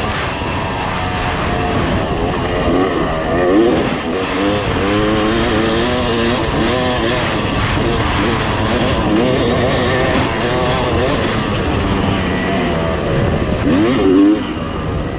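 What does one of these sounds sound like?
Tyres crunch over a dirt track.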